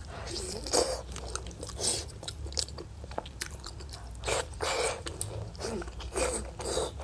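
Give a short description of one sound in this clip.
A young woman chews and slurps food loudly, close to a microphone.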